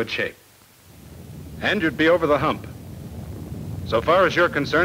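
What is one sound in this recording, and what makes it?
A large explosion rumbles low in the distance.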